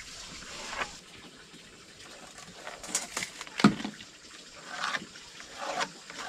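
A tool scrapes and taps against a wooden board.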